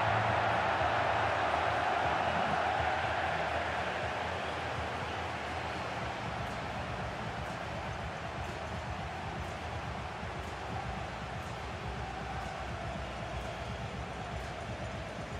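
A large stadium crowd cheers loudly and steadily.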